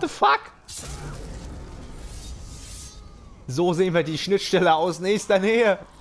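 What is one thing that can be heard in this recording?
A blade slashes through flesh with a wet splatter.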